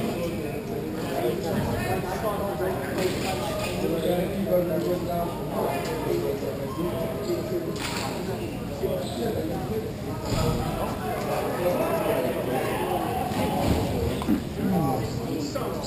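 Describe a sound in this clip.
Skate wheels roll and rumble across a hard floor in a large echoing hall.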